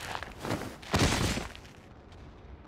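A body falls heavily to the ground with a thud.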